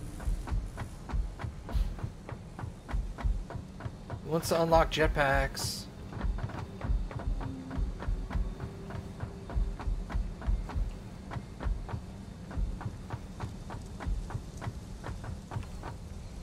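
Quick footsteps clank steadily on a metal floor.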